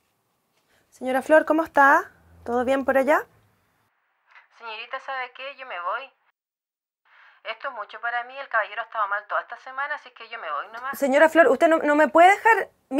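A woman speaks anxiously into a phone, close by.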